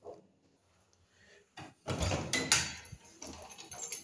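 A key turns in a lock with metallic clicks.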